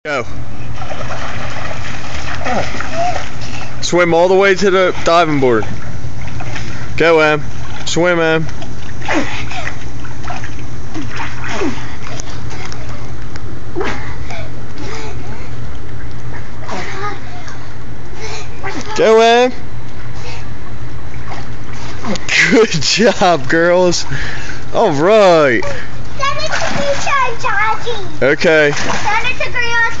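Water splashes as children swim.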